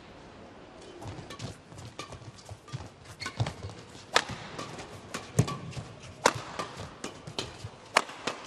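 Shuttlecocks are struck sharply back and forth by rackets in a large echoing hall.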